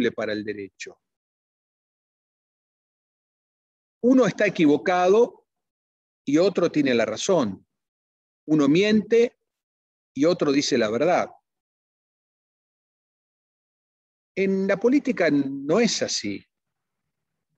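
A middle-aged man speaks with animation over an online call, pausing between phrases.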